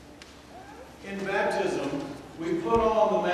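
A man speaks clearly through a microphone in a large echoing hall.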